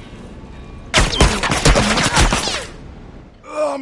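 Gunfire bursts loudly and rapidly close by.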